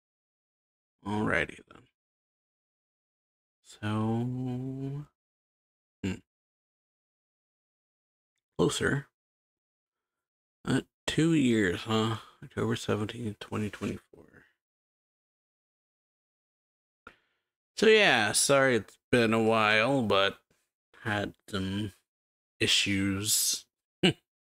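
A young man speaks in short bursts, close to a microphone, with pauses in between.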